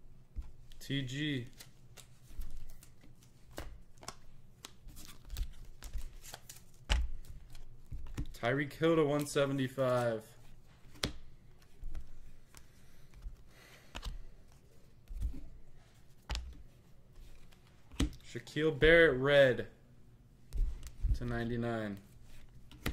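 Trading cards flick and rustle as they are shuffled by hand.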